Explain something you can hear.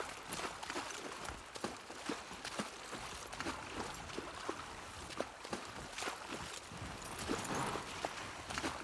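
A horse's hooves crunch steadily through snow.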